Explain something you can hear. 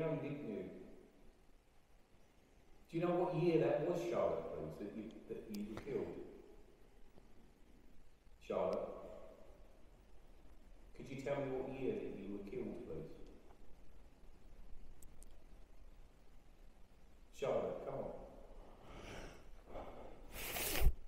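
An elderly man speaks calmly into a close microphone, in short bursts with long pauses.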